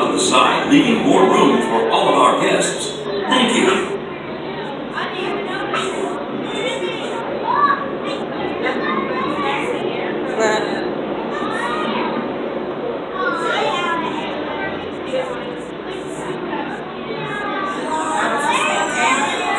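A crowd of adults and children chatters nearby in a large echoing hall.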